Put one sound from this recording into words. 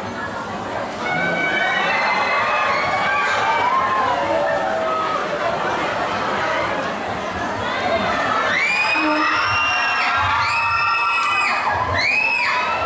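A crowd of young women screams and shrieks with excitement in a busy, echoing space.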